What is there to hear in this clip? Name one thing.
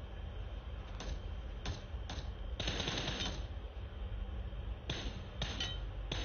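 Gunshots crack from a rifle, one after another.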